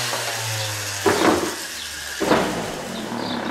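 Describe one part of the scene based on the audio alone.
A tool clatters as it is set down.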